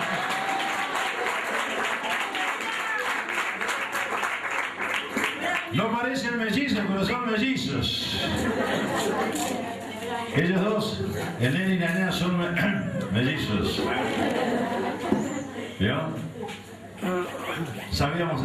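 A middle-aged man talks with animation into a microphone over loudspeakers.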